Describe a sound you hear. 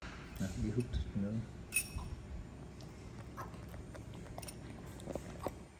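A metal spoon clinks against a ceramic bowl.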